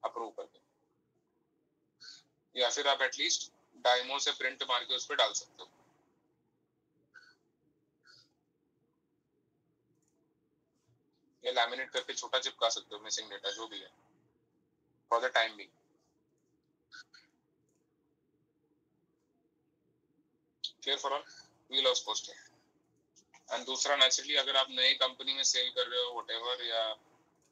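A young man speaks calmly in bursts over an online call.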